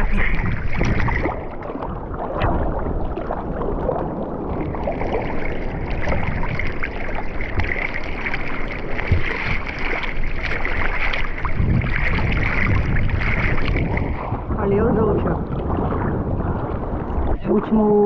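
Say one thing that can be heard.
Hands paddle and splash through the water.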